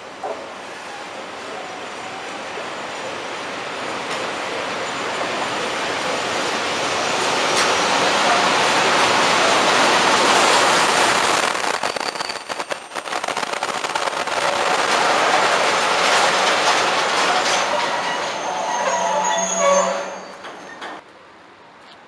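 A long freight train rumbles past close by, its wheels clattering over the rail joints.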